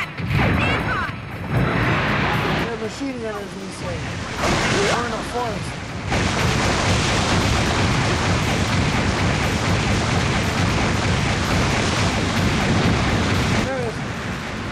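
A mech's thrusters roar loudly.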